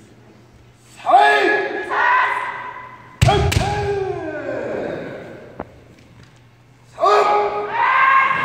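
Fighters shout loud drawn-out cries.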